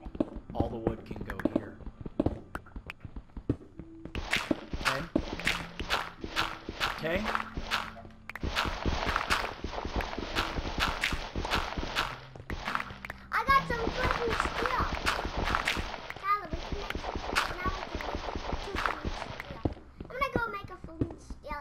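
Pickaxes chip rapidly and repeatedly at stone.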